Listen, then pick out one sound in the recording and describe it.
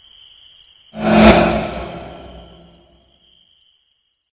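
An old woman screams loudly and the scream fades away.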